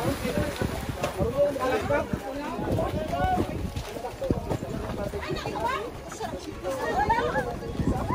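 Water splashes against a floating platform.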